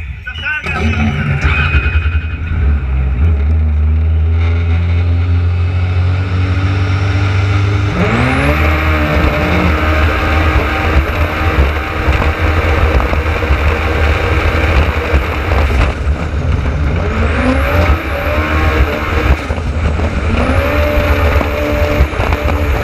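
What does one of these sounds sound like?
A jet ski engine roars and revs up and down.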